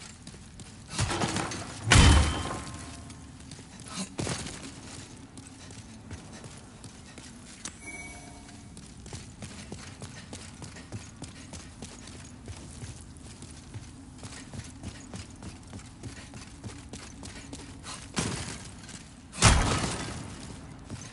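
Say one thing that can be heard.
A sword swings and strikes with a heavy crash.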